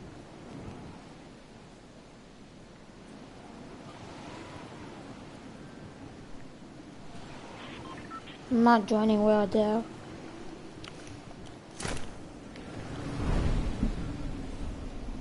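Wind rushes past steadily.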